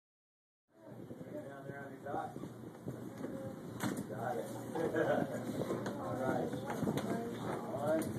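Children chatter and murmur in a room.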